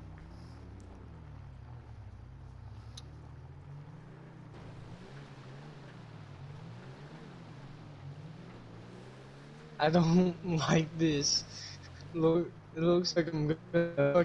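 Tyres crunch over snowy gravel.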